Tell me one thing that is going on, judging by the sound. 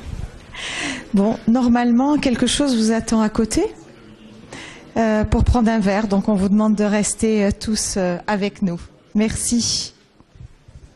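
A woman speaks into a microphone through loudspeakers in an echoing hall.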